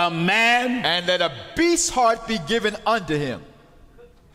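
An older man reads aloud slowly into a microphone.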